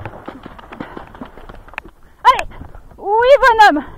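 Hooves thump as a horse lands after a jump.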